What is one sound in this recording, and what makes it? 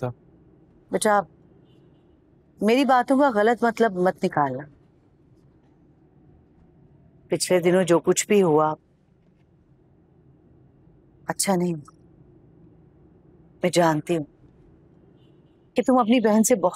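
A middle-aged woman speaks with emotion nearby.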